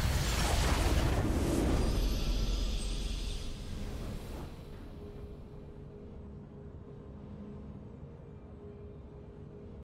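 A victory fanfare plays and slowly fades away.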